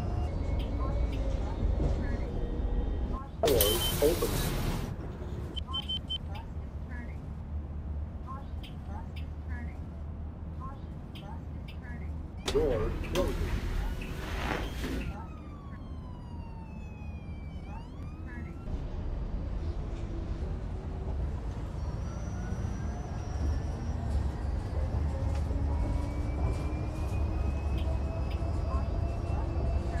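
A bus engine rumbles low and steadily.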